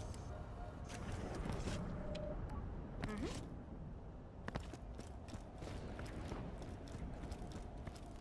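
Footsteps tread steadily on rocky ground.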